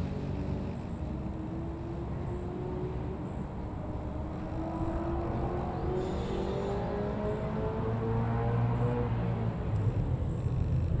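A racing car engine roars past, rising in pitch as it speeds up.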